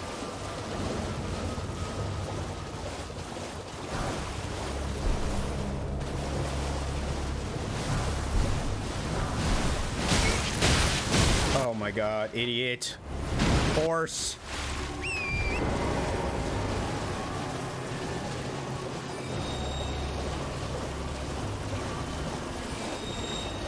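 Hooves splash steadily through shallow water.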